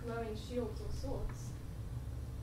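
A young woman speaks with animation in a room with some echo.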